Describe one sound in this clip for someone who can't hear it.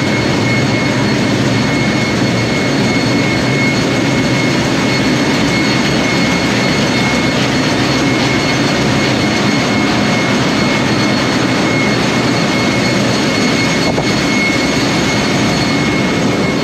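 Machinery drones loudly and steadily with a constant whine.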